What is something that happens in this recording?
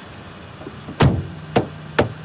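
A car door slams shut nearby.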